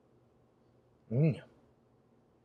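A man utters a short, questioning sound close by.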